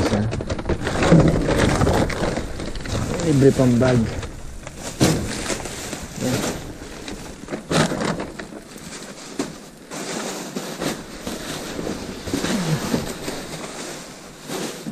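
Plastic bags rustle and crinkle as they are handled close by.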